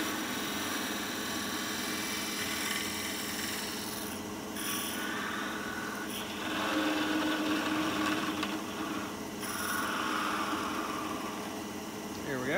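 A hand tool scrapes against spinning wood.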